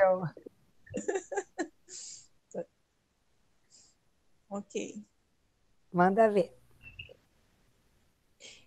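A middle-aged woman talks cheerfully over an online call.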